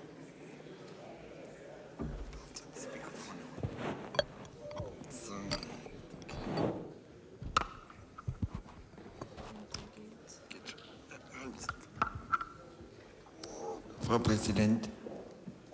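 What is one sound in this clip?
Voices murmur in a large echoing hall.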